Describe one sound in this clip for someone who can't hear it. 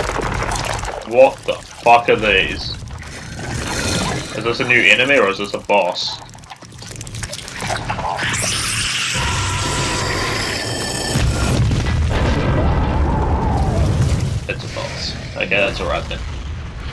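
A huge monster growls and roars deeply.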